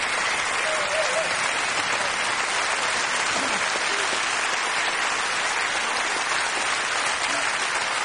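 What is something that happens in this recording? A large audience applauds loudly and steadily.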